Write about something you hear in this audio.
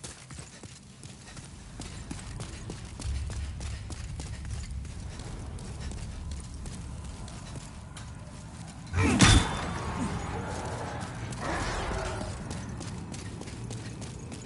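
Armoured footsteps clank and thud on stone floor.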